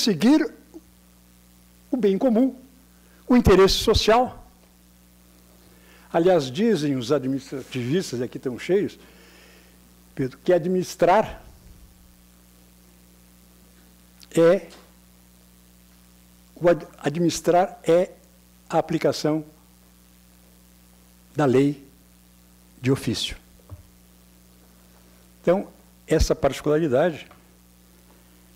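A man speaks at a measured pace into a microphone, with pauses, heard through loudspeakers in a large hall.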